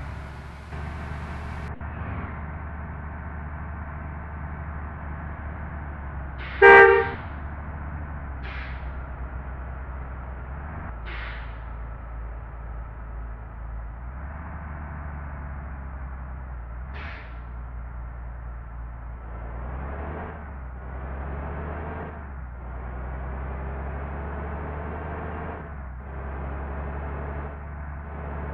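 A bus engine hums steadily, rising and falling with speed.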